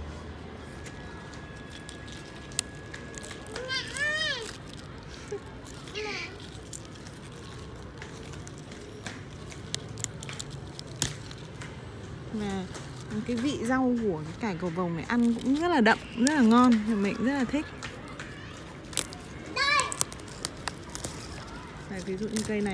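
Leafy plant stalks rustle and snap as a hand picks them.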